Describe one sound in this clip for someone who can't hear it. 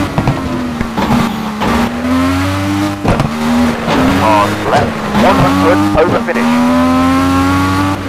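Gravel sprays and crunches under skidding tyres.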